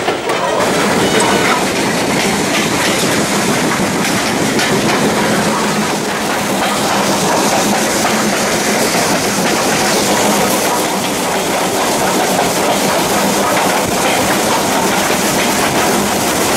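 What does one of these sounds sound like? Train wheels rumble and clatter steadily on the rails.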